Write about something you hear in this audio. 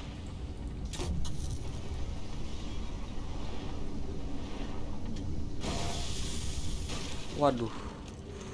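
A flare hisses and burns.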